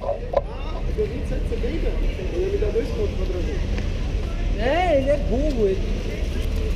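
Young men talk nearby in passing.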